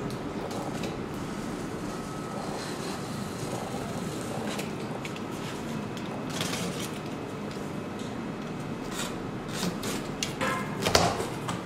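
A blade slits packing tape on a cardboard box.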